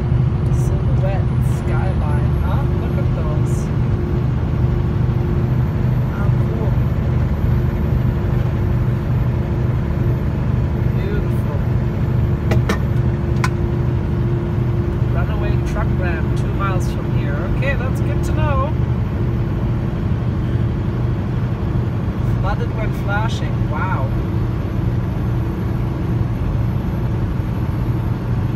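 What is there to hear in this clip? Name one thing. A car's engine hums steadily as the car drives along a highway.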